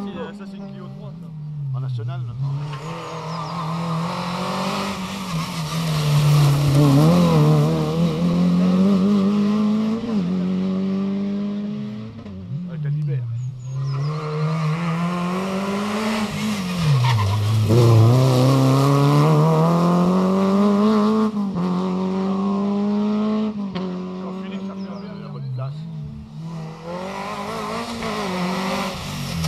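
A rally car engine roars close by, revving up and dropping through gear changes.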